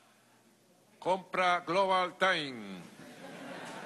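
A man speaks loudly and firmly in a room with a slight echo.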